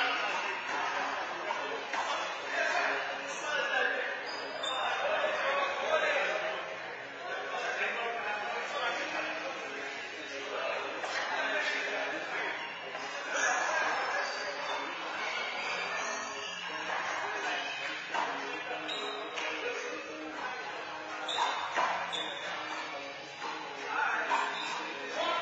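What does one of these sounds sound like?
A handball smacks against a wall in an echoing court.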